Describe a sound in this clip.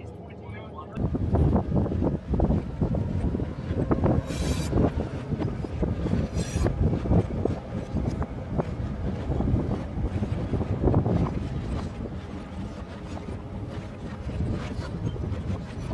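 A train clatters and rattles past on the tracks.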